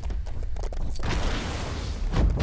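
A burst of steam hisses loudly.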